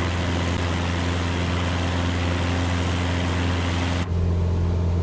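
A small propeller plane's engine drones steadily with a rushing, airy roar.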